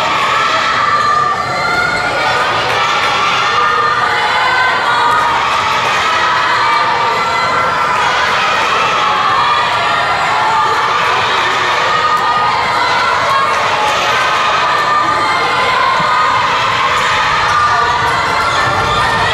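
A crowd of young spectators cheers and chants loudly in a large echoing hall.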